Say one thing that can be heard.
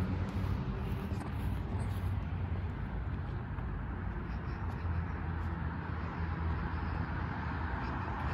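Traffic hums on a nearby road.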